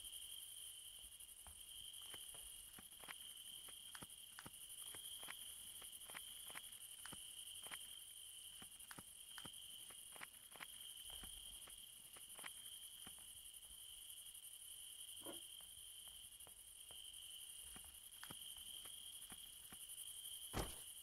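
Footsteps tap steadily across a floor.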